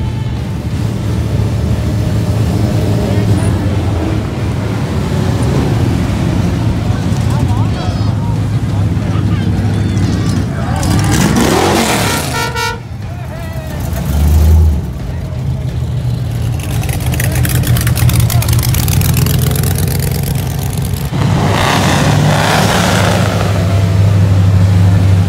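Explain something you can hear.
Loud engines rumble as old cars and hot rods drive slowly past.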